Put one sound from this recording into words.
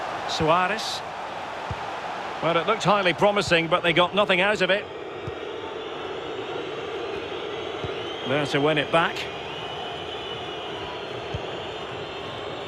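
A large stadium crowd murmurs and roars steadily.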